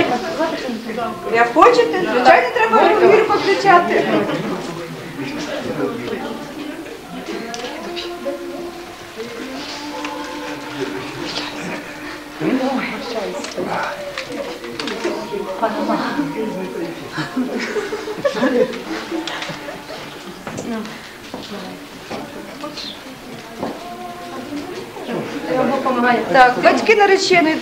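Several people murmur and talk in a room.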